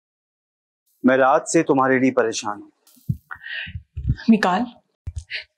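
A young woman speaks with animation on a phone.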